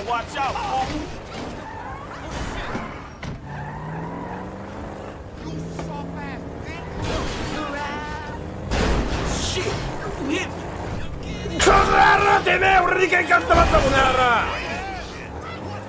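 A car engine revs as the car speeds off.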